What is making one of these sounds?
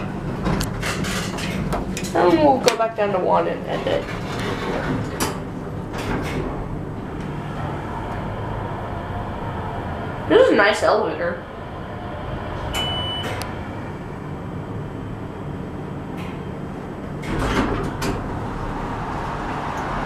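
An elevator hums steadily as it travels.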